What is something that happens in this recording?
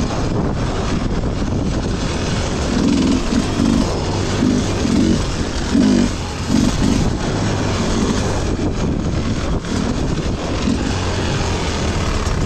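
A dirt bike engine revs and sputters close by.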